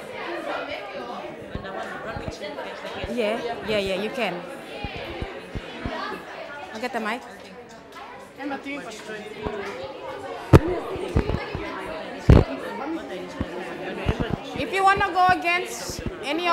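A teenage girl speaks calmly nearby.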